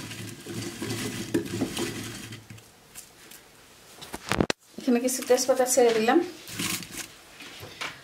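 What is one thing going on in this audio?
Chopped vegetables rustle and knock together as hands toss them in a bowl.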